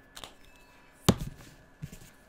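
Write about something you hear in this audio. A marker cap clicks shut.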